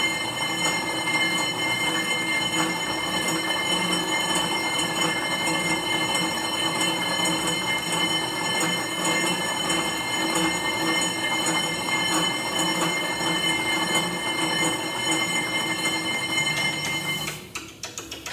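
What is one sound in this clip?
An exercise bike whirs steadily as a man pedals hard.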